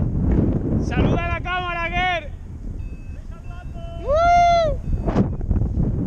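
A man whoops and cheers loudly nearby.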